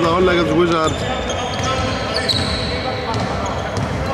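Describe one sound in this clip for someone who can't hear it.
Sneakers squeak on a wooden court floor.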